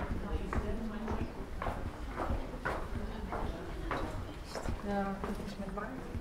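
Women talk casually nearby.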